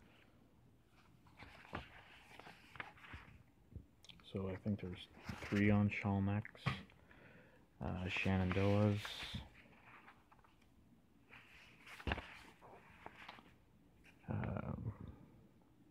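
Paper pages rustle and flap as a book's pages are turned by hand.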